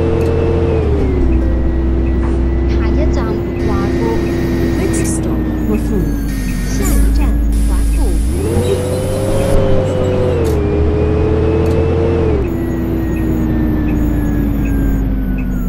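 A bus engine hums steadily, rising and falling in pitch as the bus speeds up and slows down.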